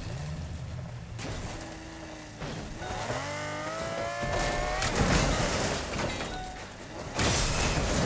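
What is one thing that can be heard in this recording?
A car engine revs and roars.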